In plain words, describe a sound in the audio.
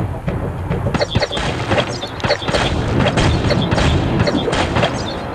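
Punches and energy blasts thud and crackle in a video game fight.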